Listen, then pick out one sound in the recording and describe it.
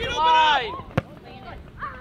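A ball thumps as a player kicks it.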